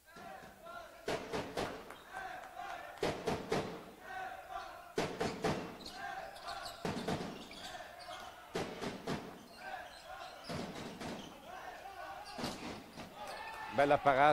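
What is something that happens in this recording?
A handball bounces on a wooden floor in a large echoing hall.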